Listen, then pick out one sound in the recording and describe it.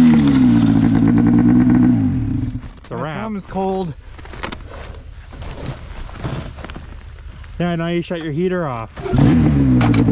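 A snowmobile engine idles nearby.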